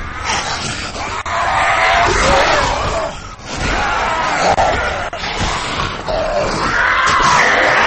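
Creatures snarl and growl close by.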